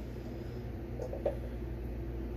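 Plastic containers knock and clatter against each other.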